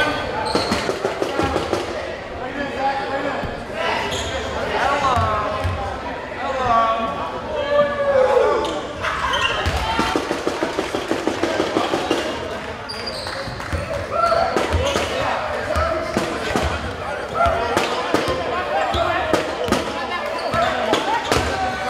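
A crowd of spectators shouts and cheers in an echoing gym.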